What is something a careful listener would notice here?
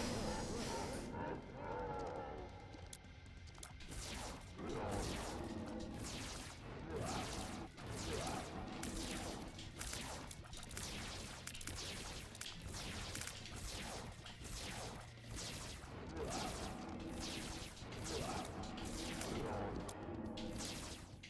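Video game shots and bursts pop and crackle rapidly.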